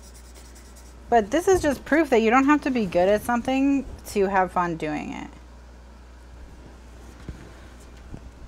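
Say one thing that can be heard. Paper slides across a table.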